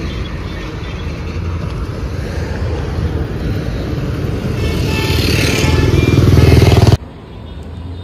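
Traffic rumbles along a road nearby.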